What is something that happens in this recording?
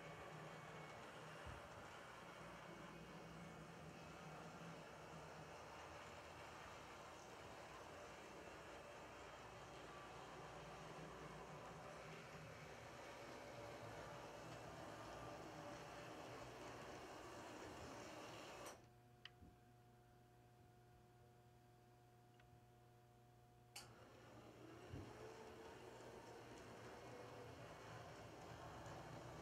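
A small model train hums and rattles along its track.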